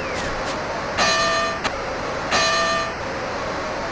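A bell rings twice with a bright electronic tone.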